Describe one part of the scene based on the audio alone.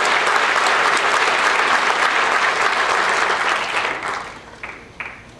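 An audience applauds in a large hall, then the applause dies away.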